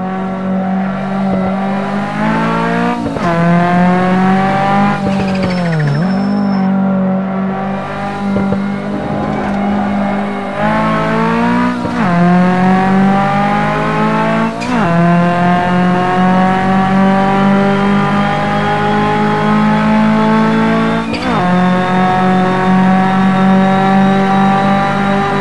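A racing car engine revs hard, rising in pitch through each gear and dropping sharply at every gear change.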